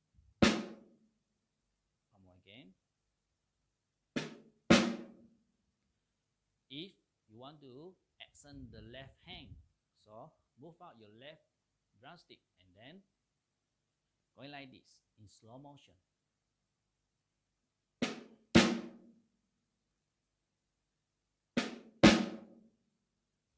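A drummer plays flam strokes on a snare drum, each a sharp double hit.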